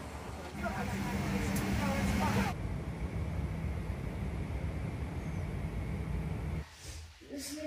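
An airplane engine drones steadily inside a cabin.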